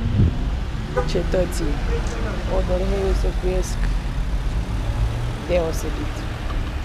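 A young woman talks close to the microphone with animation.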